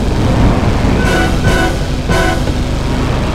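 Machine guns fire in short rattling bursts.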